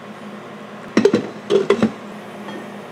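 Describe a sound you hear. A glass coffee pot clunks back into a coffee maker.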